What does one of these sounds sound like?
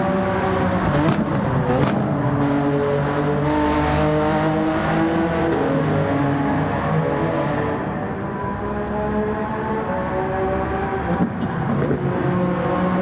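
A racing car roars past close by with a rush.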